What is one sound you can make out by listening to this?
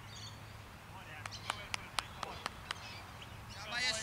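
A cricket bat strikes a ball with a sharp crack outdoors.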